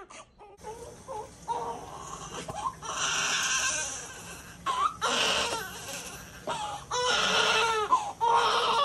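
A newborn baby cries and fusses close by.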